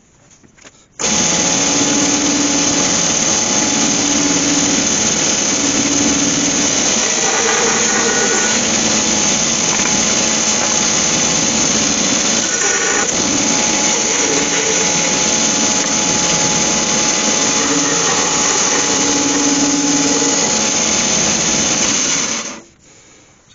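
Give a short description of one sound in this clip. A band saw runs with a loud, steady whir.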